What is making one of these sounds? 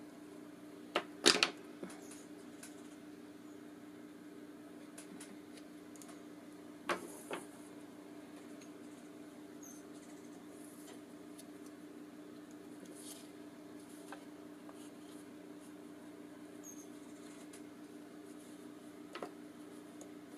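Small objects knock on a table.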